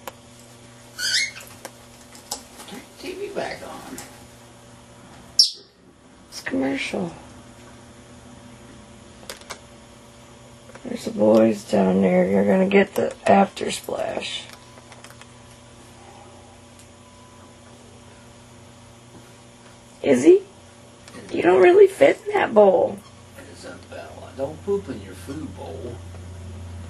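A parrot squawks and chatters nearby in short bursts.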